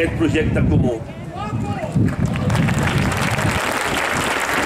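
A man speaks loudly into a microphone outdoors, heard through loudspeakers.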